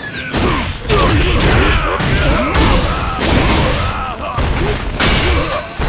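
Heavy punches and kicks land with loud thuds in quick succession.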